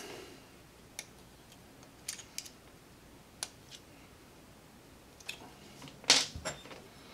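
Small plastic parts click and snap as hands handle them.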